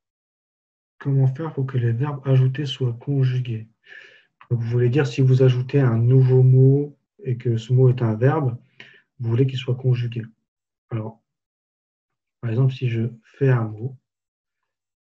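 A man speaks calmly and clearly into a close microphone.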